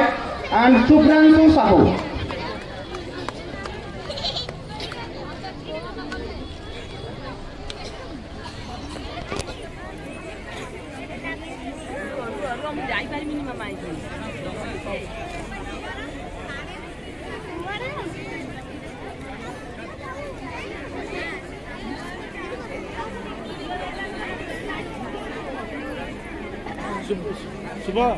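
People chat and murmur among themselves.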